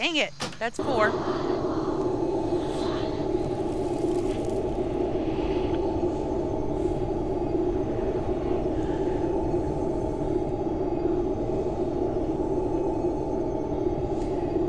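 A low, eerie wind drones steadily.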